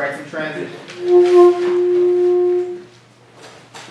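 A man plays a long held note on a trumpet.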